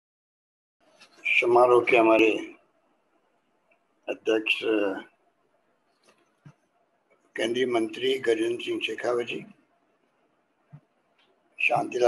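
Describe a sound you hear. An elderly man reads out calmly, heard through a microphone.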